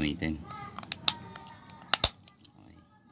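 Plastic parts click together.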